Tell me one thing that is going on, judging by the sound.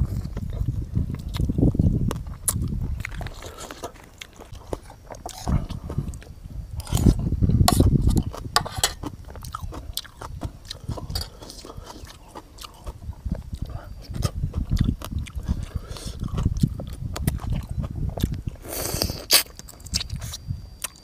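A man chews and smacks food loudly, close to a microphone.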